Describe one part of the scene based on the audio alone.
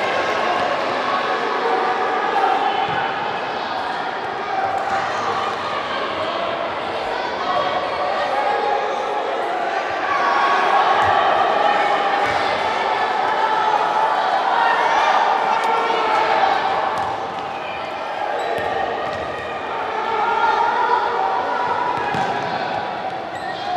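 Young boys call out to each other while playing.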